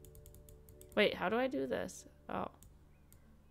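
A young woman speaks briefly with animation into a microphone, close by.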